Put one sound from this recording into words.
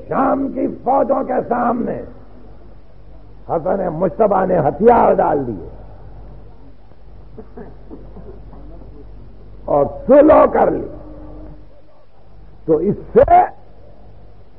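An elderly man speaks slowly and with emphasis, heard through an old recording.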